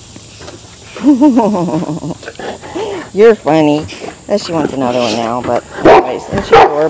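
A large dog whines and howls loudly, close by, with rising and falling pitch.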